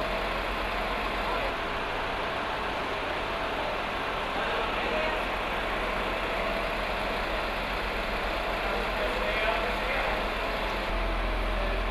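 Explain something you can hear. A truck engine rumbles steadily in an echoing tunnel.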